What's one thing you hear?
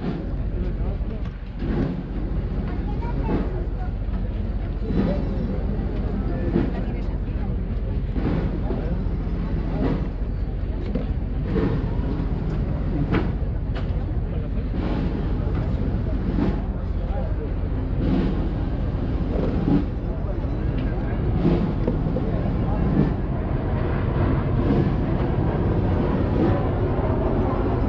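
A large outdoor crowd murmurs and chatters nearby.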